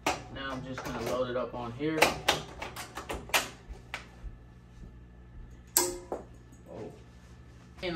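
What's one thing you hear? A cap frame clicks sharply into place on a machine.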